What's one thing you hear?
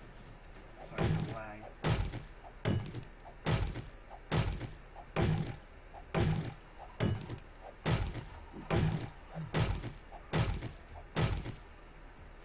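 An axe chops into wood with steady, repeated dull thuds.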